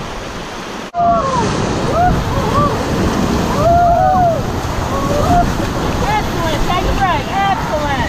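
Water splashes over the edge of a raft.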